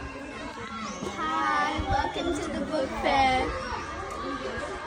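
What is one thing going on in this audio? Young girls speak together with excitement close by.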